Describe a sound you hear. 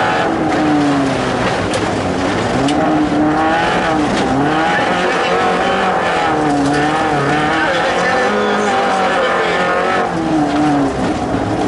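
A car engine roars loudly, revving up and down as the car races.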